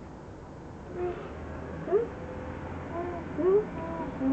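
A woman speaks in a cheerful, sing-song voice close by.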